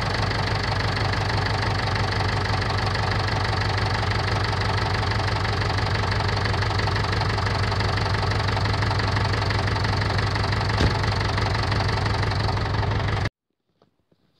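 A diesel tractor engine idles.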